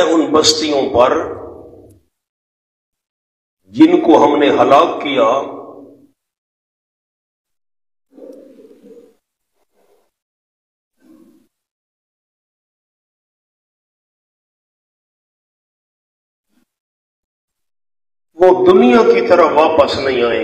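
A man speaks with animation into a microphone, with pauses between phrases.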